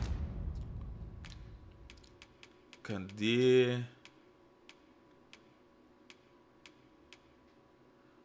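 Soft menu clicks tick now and then.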